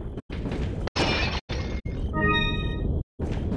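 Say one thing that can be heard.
A ceramic vase shatters.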